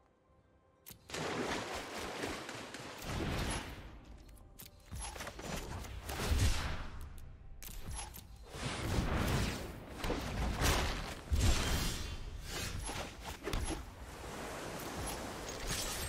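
Magical whooshing effects sweep by in bursts.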